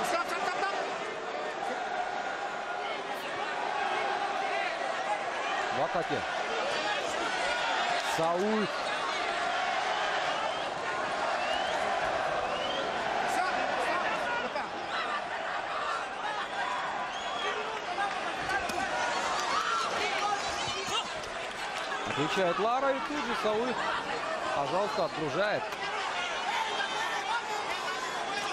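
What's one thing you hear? A large crowd roars and cheers throughout in a big echoing arena.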